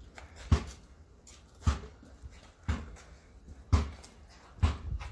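A basketball bounces steadily on concrete outdoors.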